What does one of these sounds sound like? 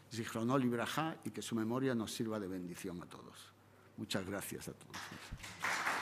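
An elderly man speaks with animation through a microphone in an echoing hall.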